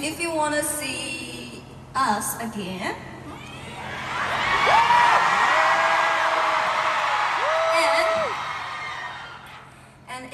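A young woman sings through a microphone over loud speakers.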